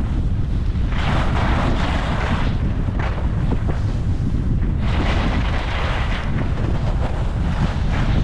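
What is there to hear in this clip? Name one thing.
Skis scrape and hiss over packed snow in bursts.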